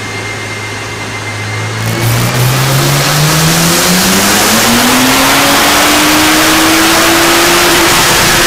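A car engine idles, then revs up steadily to a loud roar.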